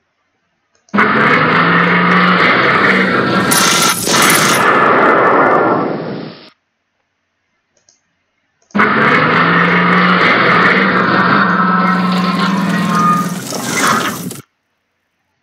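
Tank guns fire and shells explode with loud, rumbling blasts.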